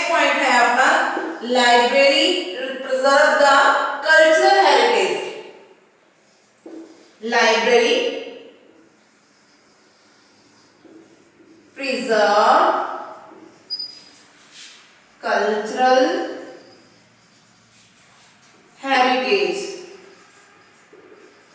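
A woman speaks calmly into a microphone, in bursts with pauses.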